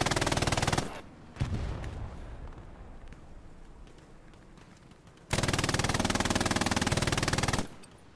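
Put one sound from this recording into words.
A machine gun fires rapid bursts at close range.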